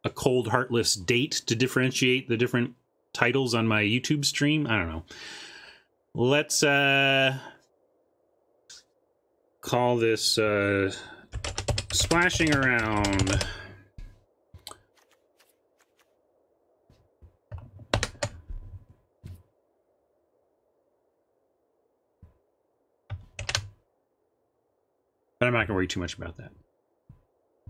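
A man talks with animation, close to a microphone, in bursts with pauses.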